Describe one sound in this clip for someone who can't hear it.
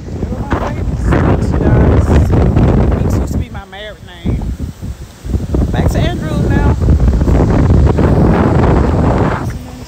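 Footsteps shuffle softly on grass and dry leaves.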